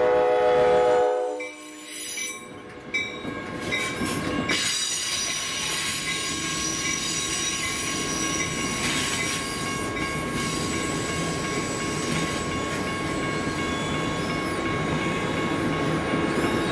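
A train rumbles and clatters past on the tracks close by.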